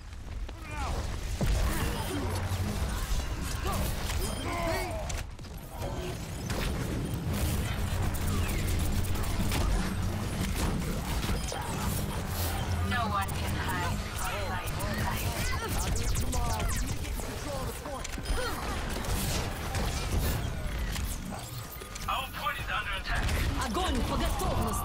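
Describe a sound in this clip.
Game explosions and zaps crackle sharply.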